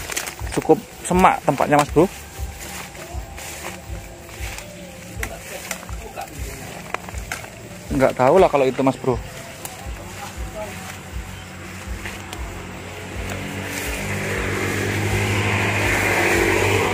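Tall grass and leaves rustle and swish as a person pushes through them.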